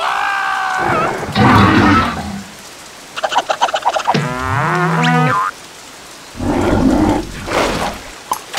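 Water splashes loudly as a creature bursts out of it.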